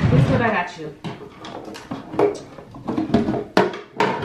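A drawer rattles as a young woman rummages through it.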